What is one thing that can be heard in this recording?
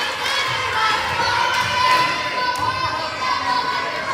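Young girls call out and cheer to each other nearby.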